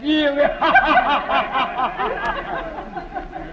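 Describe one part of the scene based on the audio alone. A man laughs heartily, close by.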